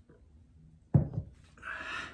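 A mug is set down on a table with a knock.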